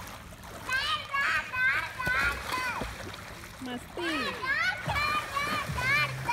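Water splashes as children wade and play in a pool.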